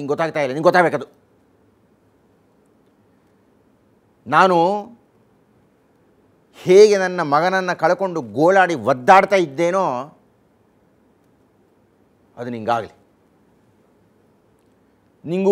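An elderly man speaks expressively into a close microphone, in bursts with long pauses.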